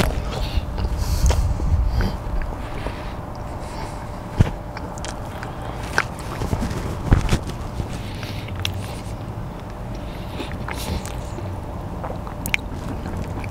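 A car engine hums steadily with road noise inside the cabin.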